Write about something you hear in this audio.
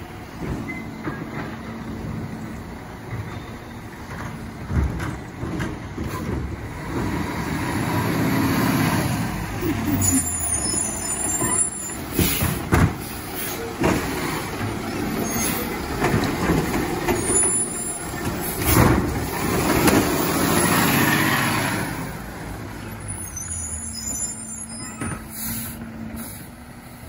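A garbage truck engine rumbles close by and drives up.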